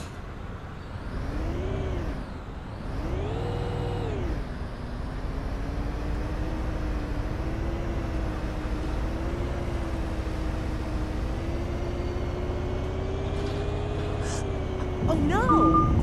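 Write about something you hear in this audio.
A bus engine hums and rises in pitch as it speeds up.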